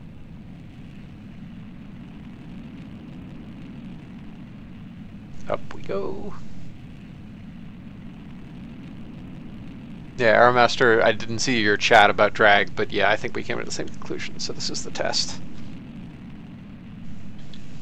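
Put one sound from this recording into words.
A rocket engine roars steadily.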